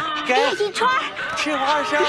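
A woman sings in a high, warbling opera style.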